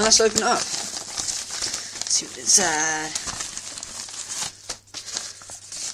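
Paper and plastic packaging rustle and crinkle as a hand handles it.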